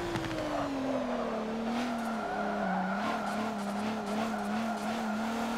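A car engine pops and crackles as the driver lifts off.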